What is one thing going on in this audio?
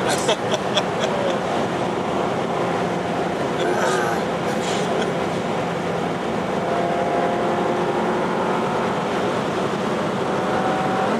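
Tyres roar on asphalt.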